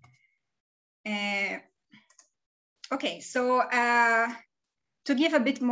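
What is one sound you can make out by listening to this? A woman speaks calmly over an online call, with long pauses.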